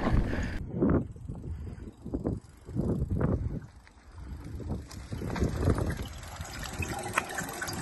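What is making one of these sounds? Bike tyres crunch over grass and dirt nearby.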